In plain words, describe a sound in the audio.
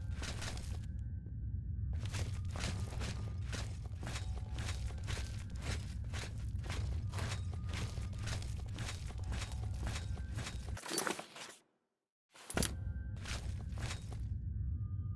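Footsteps echo on a stone floor.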